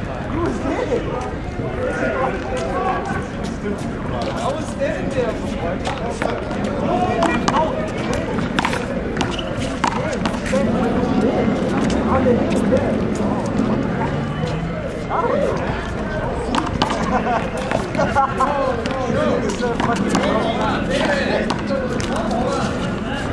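Young men call out and talk with animation outdoors.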